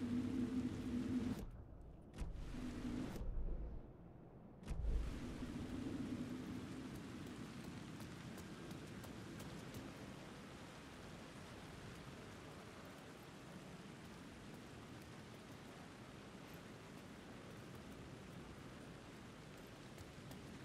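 Footsteps tread slowly on wet ground.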